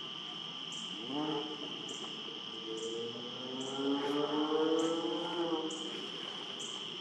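An osprey gives a series of shrill, whistling calls close by.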